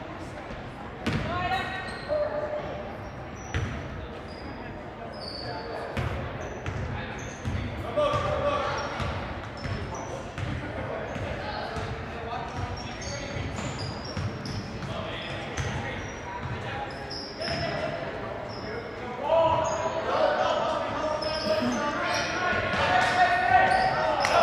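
Young boys shout and call out in an echoing gym.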